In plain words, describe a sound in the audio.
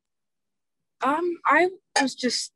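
Another young woman speaks with animation over an online call.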